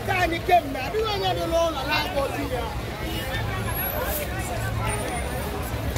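A crowd of men and women talk and shout nearby outdoors.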